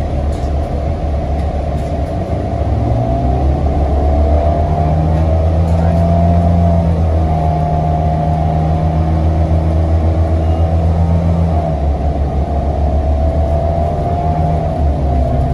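A bus engine hums and whines steadily, rising and falling in pitch as the bus drives.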